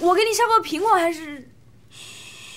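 A young woman speaks briefly and clearly, close by.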